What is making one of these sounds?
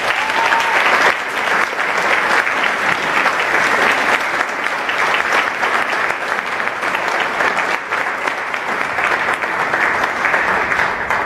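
A mixed youth choir sings in harmony in a large hall.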